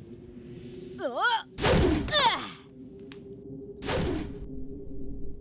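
A boy speaks in alarm.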